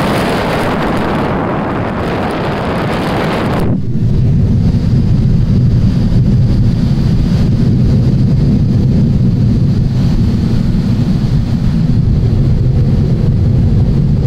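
An aircraft engine drones steadily from inside the cabin.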